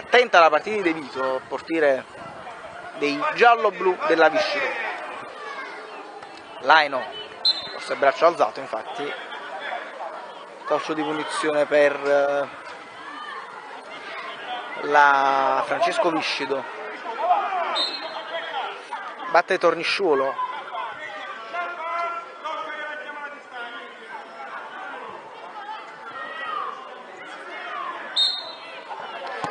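Children shout and call out on an open pitch outdoors.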